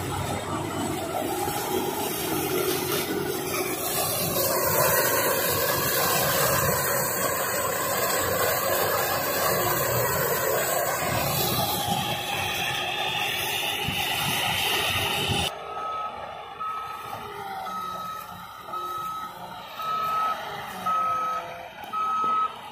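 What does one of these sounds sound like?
A heavy machine engine roars loudly and steadily close by.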